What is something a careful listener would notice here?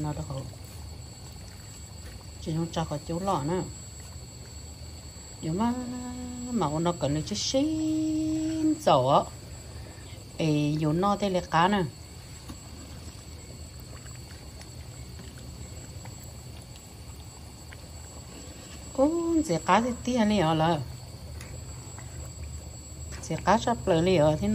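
A wooden spoon stirs thick liquid in a pan.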